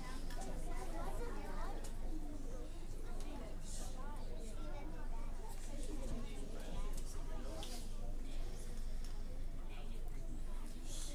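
Many children chatter and murmur in a large echoing hall.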